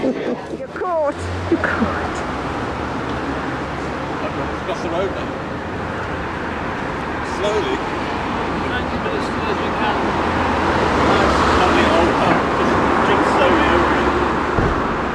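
Traffic rumbles along a city street outdoors.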